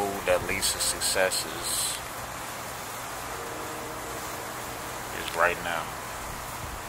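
A young man talks close by in short bursts.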